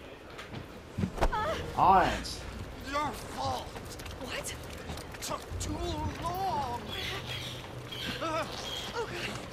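An elderly man speaks agitatedly, close by.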